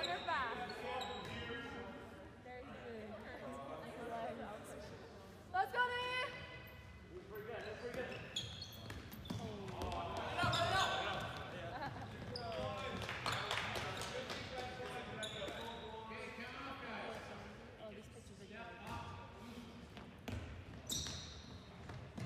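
Young men shout to each other in an echoing gym.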